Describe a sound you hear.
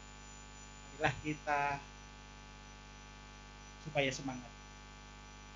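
A man speaks through a microphone with a cheerful tone.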